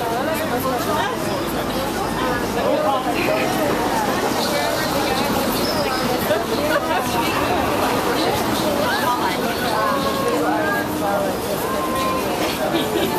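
Several men and women chatter nearby on a busy street.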